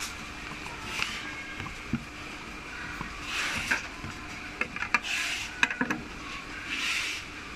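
A paper leaflet rustles and crinkles in a hand.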